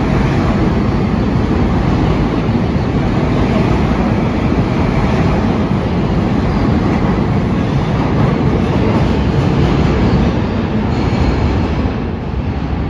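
A subway train rumbles loudly out of an echoing underground station.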